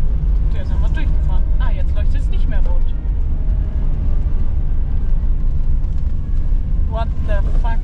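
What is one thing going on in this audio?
A car engine rumbles steadily from inside the car.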